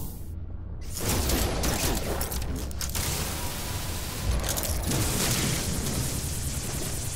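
A sci-fi laser weapon fires rapid, buzzing bursts.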